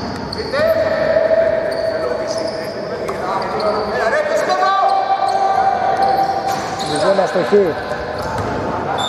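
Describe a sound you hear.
Sneakers squeak on a hard court floor in a large echoing hall.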